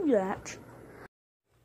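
A young child shrieks nearby.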